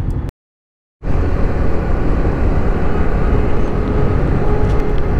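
Wind roars past a fast-moving motorcycle.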